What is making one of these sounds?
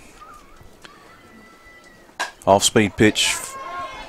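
A metal bat strikes a softball with a sharp ping.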